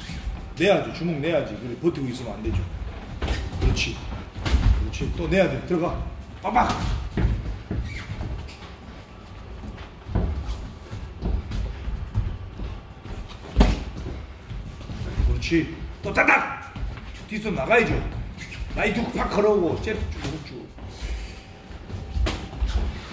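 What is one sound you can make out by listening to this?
Boxing gloves thud against pads and gloves in quick bursts.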